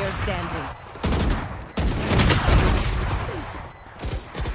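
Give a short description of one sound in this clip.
Rapid gunshots crack from a video game.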